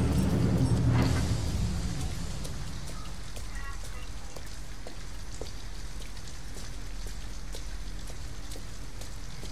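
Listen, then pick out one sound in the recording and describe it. Footsteps tap on wet pavement at a steady walking pace.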